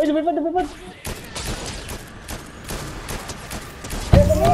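A sniper rifle fires a sharp shot.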